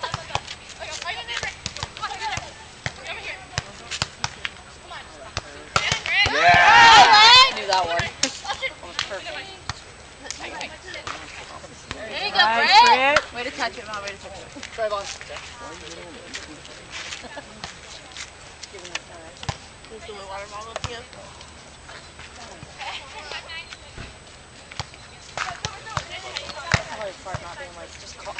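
Hands strike a volleyball.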